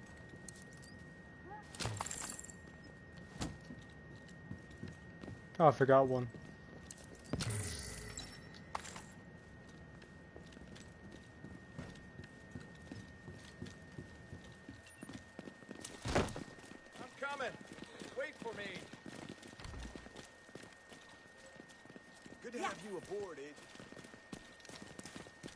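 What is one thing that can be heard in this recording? Footsteps thud on wooden floors and on the ground.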